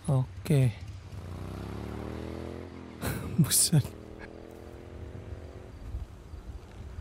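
A motorbike engine hums past.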